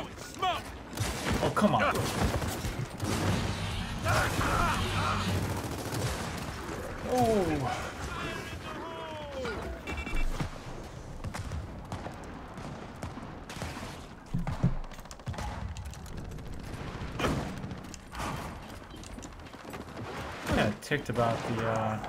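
Gunfire and explosions from a video game crackle and boom.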